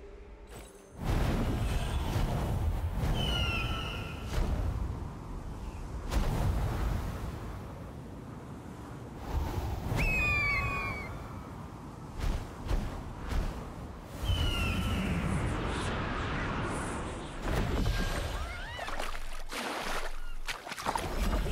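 Wind rushes loudly and steadily.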